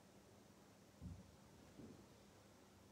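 A metal cup clinks softly on a hard surface.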